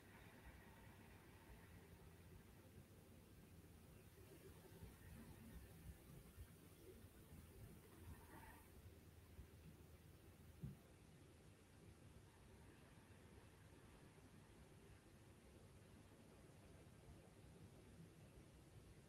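Fabric rustles softly as a person shifts on a floor mat.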